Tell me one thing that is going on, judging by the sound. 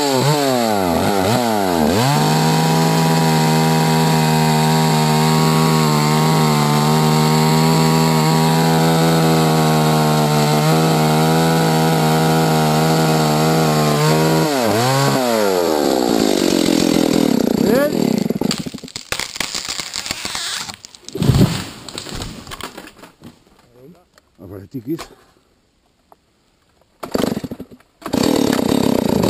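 A chainsaw roars close by, cutting through a tree trunk.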